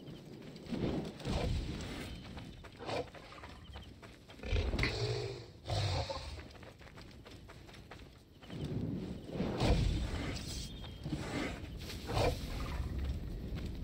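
Footsteps run over sand.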